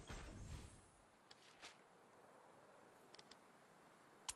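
A pickaxe knocks against a wooden wall.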